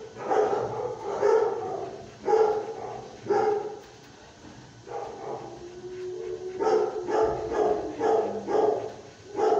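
A dog pants rapidly close by.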